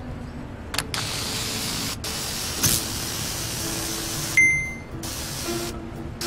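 Electric sparks crackle and buzz.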